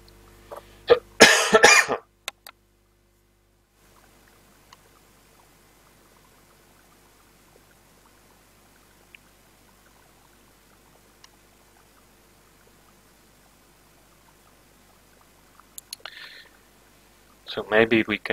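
A young man speaks briefly and casually, close to a microphone.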